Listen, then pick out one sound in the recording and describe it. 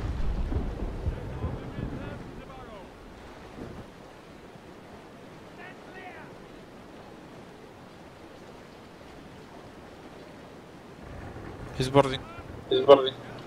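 Waves wash against a ship's hull.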